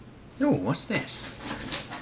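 A hand sets a can down on a table.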